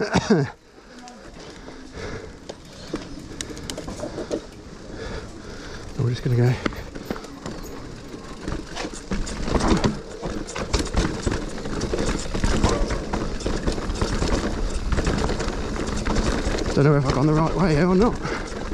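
Bike tyres rattle and crunch over a rough dirt trail.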